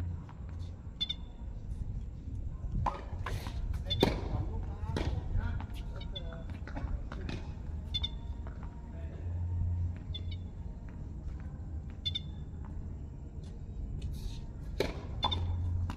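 Sneakers squeak on a hard court.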